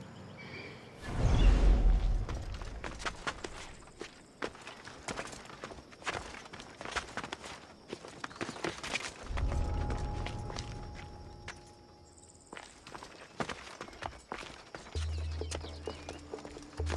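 Hands and feet scrape and tap on stone during a climb.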